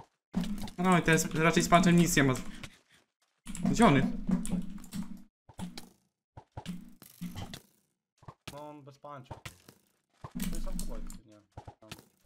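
Sword blows land with short, sharp thuds.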